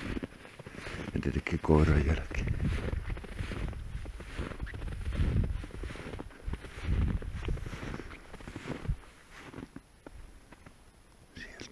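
Footsteps crunch through deep snow.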